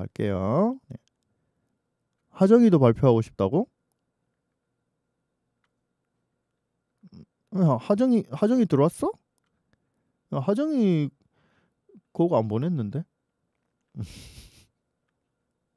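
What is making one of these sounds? An elderly man talks calmly into a microphone in short bursts.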